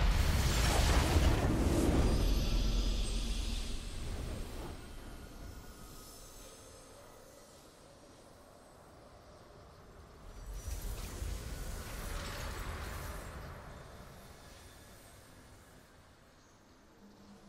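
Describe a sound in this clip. A victory fanfare swells up and slowly fades.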